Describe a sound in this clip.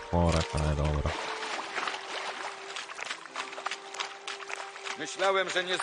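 Water splashes under running footsteps.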